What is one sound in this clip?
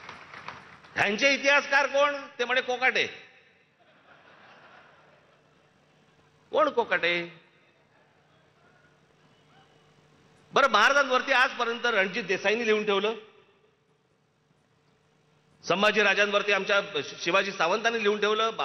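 A man speaks forcefully through a loudspeaker, echoing outdoors.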